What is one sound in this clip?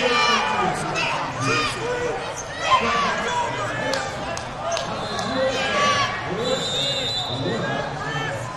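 A referee shouts instructions.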